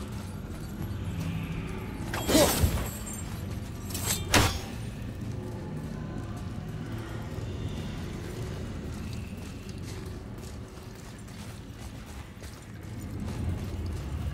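A magical swirl of energy whooshes and crackles.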